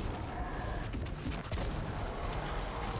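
A large energy blast roars and crackles.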